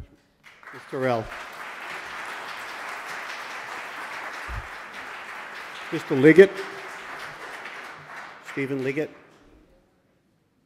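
A large crowd applauds in a big echoing hall.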